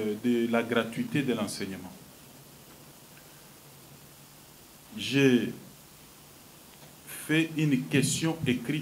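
A man speaks with animation into a microphone, with pauses.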